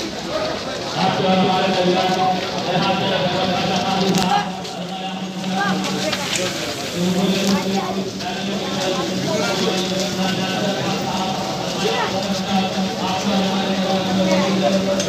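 A crowd of men chants together loudly.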